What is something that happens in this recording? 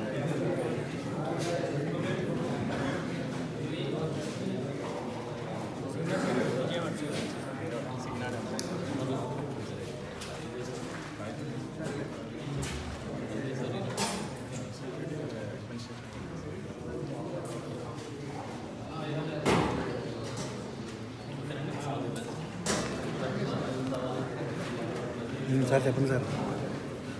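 Men talk and murmur close by in an echoing room.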